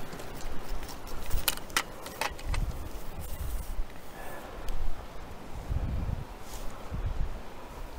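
Grass rustles as a net is handled.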